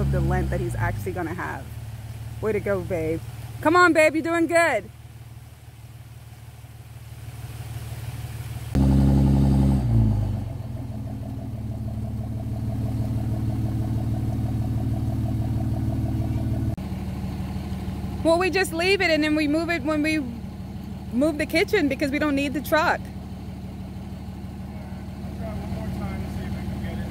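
A pickup truck's diesel engine rumbles steadily.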